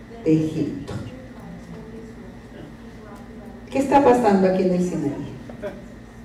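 A woman speaks into a microphone, heard through a loudspeaker.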